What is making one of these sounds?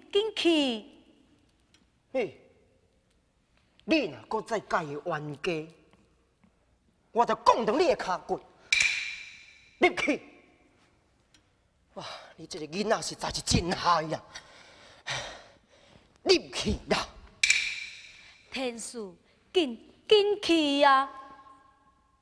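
A woman sings in a high, drawn-out theatrical voice.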